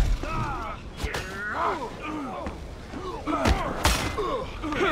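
Heavy blows land with dull, sharp thuds.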